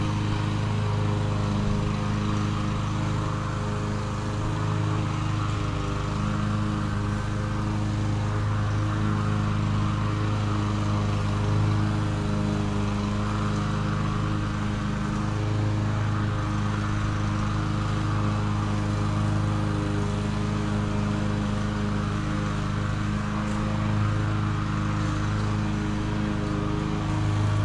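A lawn mower engine drones steadily in the distance.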